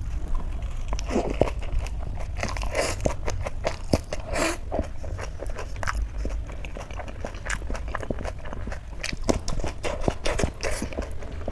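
A woman chews food loudly and wetly close to a microphone.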